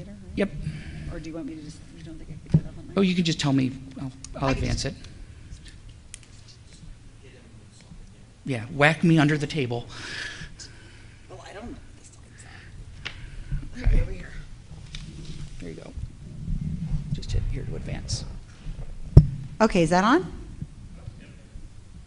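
A middle-aged woman speaks with animation into a microphone.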